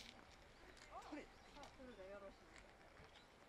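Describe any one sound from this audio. Young women talk softly a short way off.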